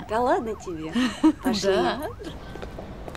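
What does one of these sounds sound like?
A woman exclaims with animated laughter up close.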